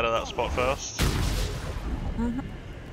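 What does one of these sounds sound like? A magic blast bursts with a loud whoosh.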